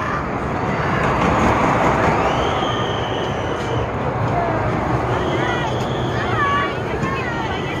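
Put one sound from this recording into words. A small ride car rolls past along a track.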